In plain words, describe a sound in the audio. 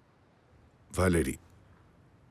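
A man speaks briefly and sharply, close by.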